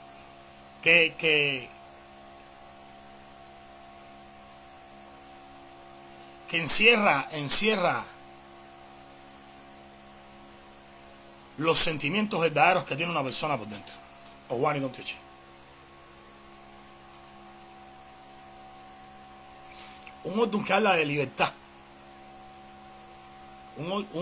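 A man speaks close to a microphone with animation, in short bursts with pauses.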